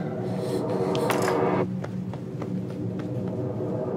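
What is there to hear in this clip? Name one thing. A cup drops and clatters on the floor.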